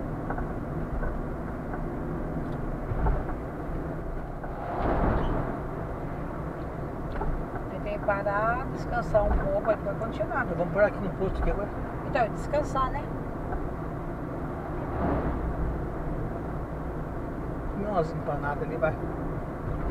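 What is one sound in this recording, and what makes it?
A car engine hums with steady road rumble from inside the car.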